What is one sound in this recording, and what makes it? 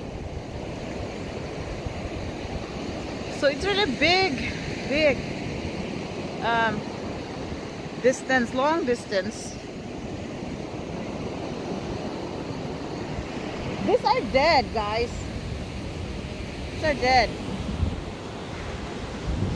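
Waves wash and roar onto the shore.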